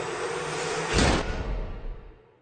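A woman gasps sharply close by.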